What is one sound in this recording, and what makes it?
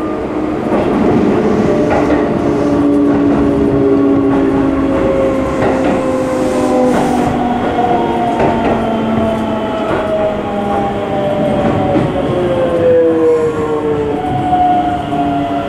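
Train wheels squeal with long, slowly sliding tones.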